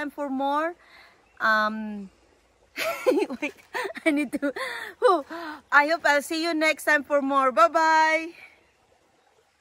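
A young woman talks cheerfully and laughs close by, outdoors.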